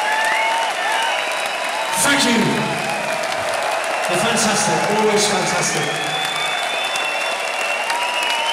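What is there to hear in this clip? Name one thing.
A large crowd cheers and screams loudly, heard up close.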